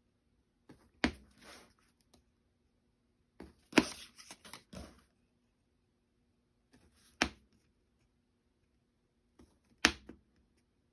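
A punch tool clicks sharply as it presses through card.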